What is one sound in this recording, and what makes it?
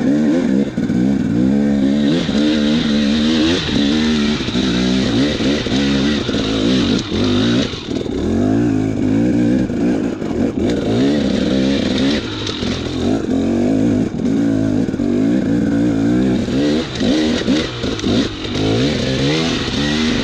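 Tyres crunch over dirt and loose rocks.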